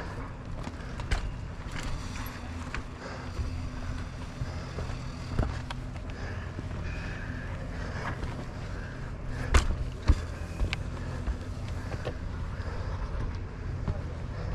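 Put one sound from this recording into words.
Tyres crunch on dirt and stones.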